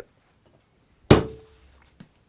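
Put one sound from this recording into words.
A hammer strikes a metal punch with a sharp clang.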